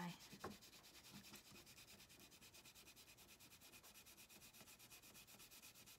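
A crayon scratches rapidly back and forth on paper.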